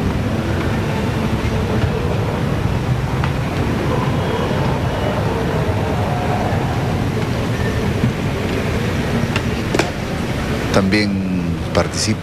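A crowd murmurs outdoors in the distance.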